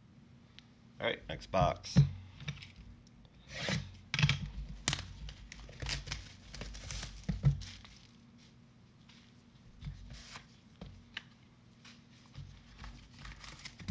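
Gloved hands handle and slide cardboard boxes with soft knocks and scrapes.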